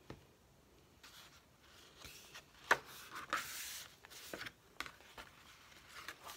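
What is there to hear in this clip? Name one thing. Pages of a thick paper journal rustle as they are turned.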